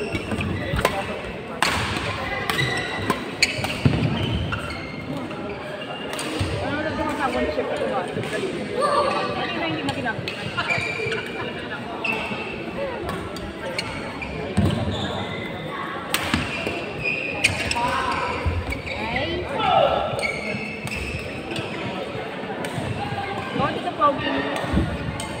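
Voices of many players chatter around a large echoing hall.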